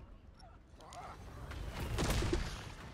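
A loud burst of energy booms and crackles.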